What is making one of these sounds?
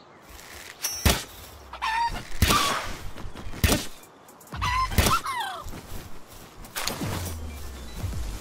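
A small bird-like creature squawks and chirps in short bursts.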